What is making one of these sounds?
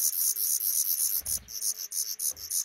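A bird's wings flutter as it takes off.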